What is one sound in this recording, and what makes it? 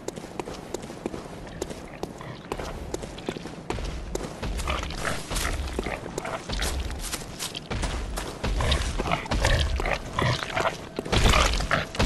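Footsteps tread quickly on stone.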